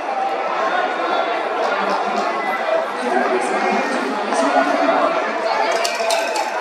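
A large stadium crowd murmurs and chatters steadily all around.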